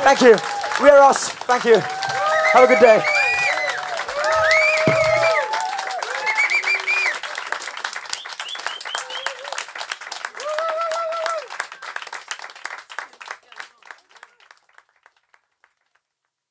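A crowd applauds loudly, slowly fading away.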